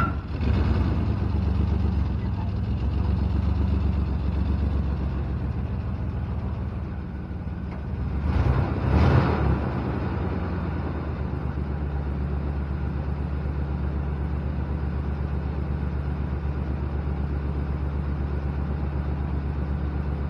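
A pickup truck engine idles with a deep, steady rumble close by.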